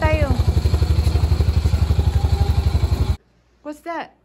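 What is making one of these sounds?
A vehicle engine idles with a rapid, rhythmic chugging.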